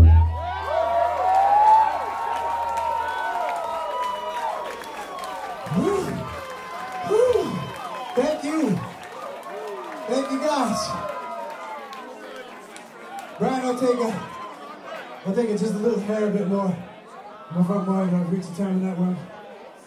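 A man sings into a microphone over a loudspeaker.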